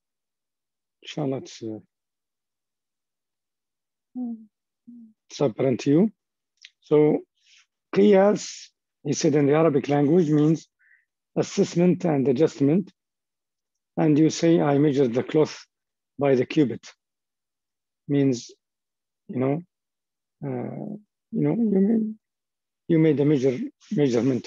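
A man speaks calmly over an online call, as if lecturing.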